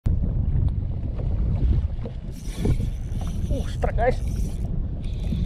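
A fishing reel whirs and clicks as it is cranked.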